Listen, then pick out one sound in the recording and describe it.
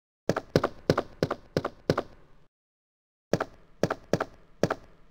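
Footsteps clatter quickly on a hard floor, with a short echo.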